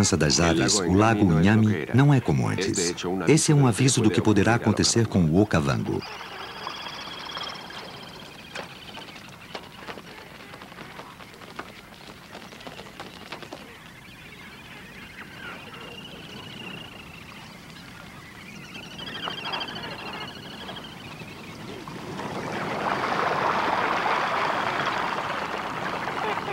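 A large flock of birds calls and honks.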